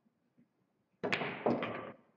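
A cue stick strikes a billiard ball with a sharp click.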